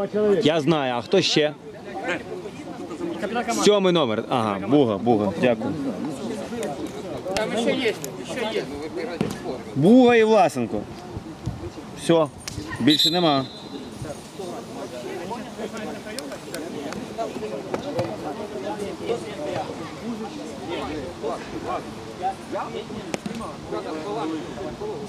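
Men talk and call out outdoors.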